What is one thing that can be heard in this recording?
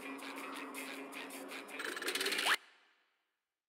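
Upbeat video game music plays and then cuts off abruptly.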